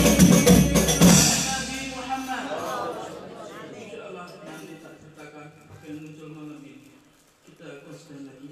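A group of men chant together in unison.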